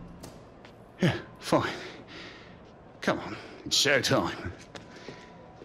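A middle-aged man answers calmly up close.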